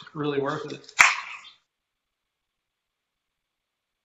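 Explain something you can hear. A man takes a sip from a can.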